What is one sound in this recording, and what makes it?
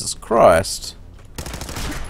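Gunshots ring out in a short burst.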